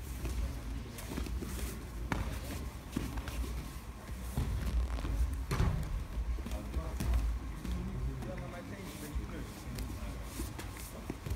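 Bodies thump and shuffle on padded mats.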